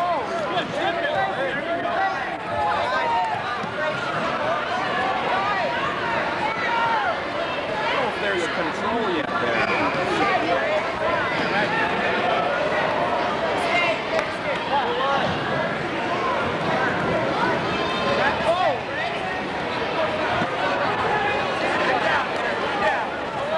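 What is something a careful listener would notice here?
Wrestlers thump and scuffle on a mat.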